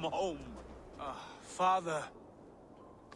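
A young man answers briefly and warmly, close by.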